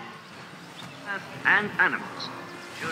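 A large animal bellows loudly nearby.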